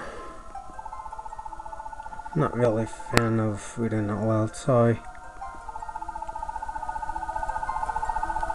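A handheld game beeps in a rapid, steady stream of blips as text prints out.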